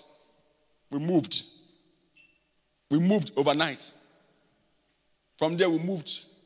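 A man speaks with emphasis into a microphone, in short phrases with pauses, in a room with slight echo.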